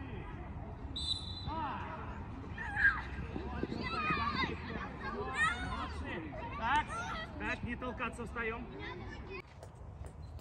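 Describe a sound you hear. Children shout and call out in the distance outdoors.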